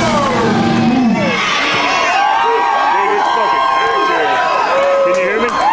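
A large crowd screams and cheers loudly.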